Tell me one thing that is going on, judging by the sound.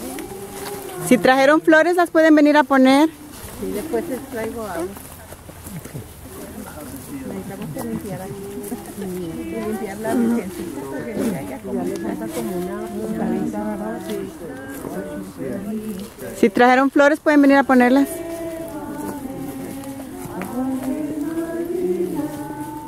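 A group of men and women sing together outdoors.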